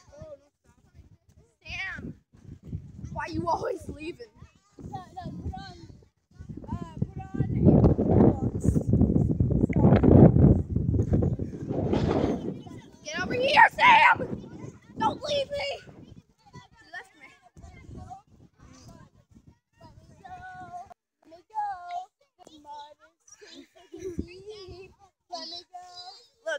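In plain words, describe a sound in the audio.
A boy talks with animation close to a phone microphone.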